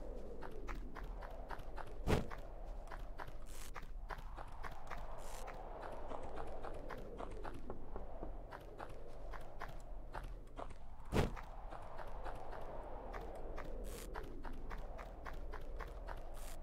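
Light footsteps patter quickly and steadily.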